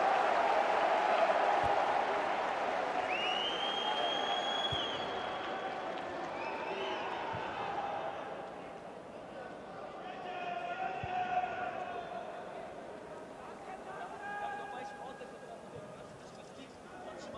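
A crowd chants and murmurs in a large open stadium.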